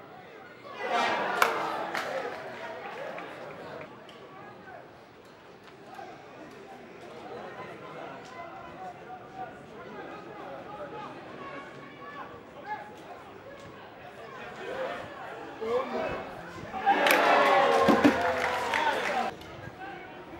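A crowd cheers loudly in an open stadium.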